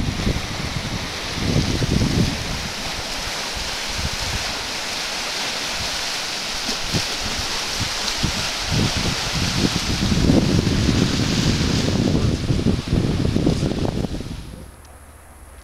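Small waves lap and splash against rocks.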